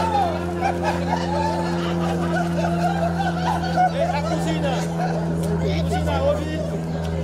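A crowd of men and women chatter and talk nearby outdoors.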